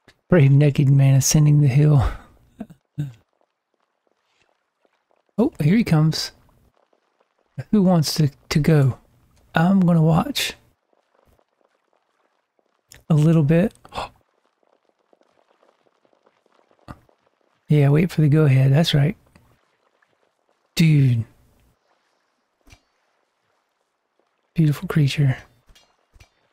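A young man talks into a close microphone, in short bursts with pauses.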